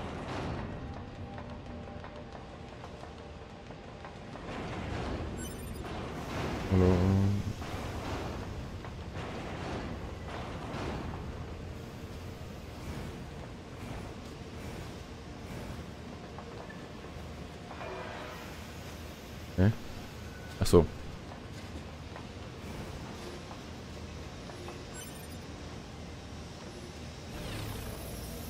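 Footsteps patter quickly on metal walkways.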